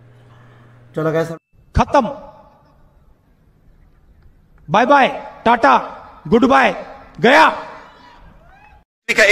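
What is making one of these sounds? A man speaks loudly and forcefully into a microphone, heard through loudspeakers outdoors with echo.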